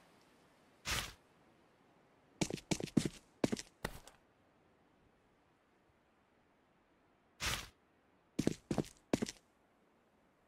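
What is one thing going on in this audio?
Short, sharp blows knock against stone blocks in quick bursts.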